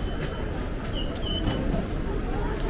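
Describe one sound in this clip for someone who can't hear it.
A ticket gate beeps briefly.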